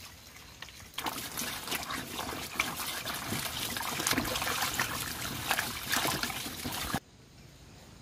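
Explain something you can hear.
Water splashes and sloshes as hands wash things in a tub.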